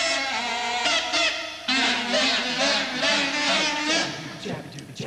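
Several trumpets play a bright, brassy melody together.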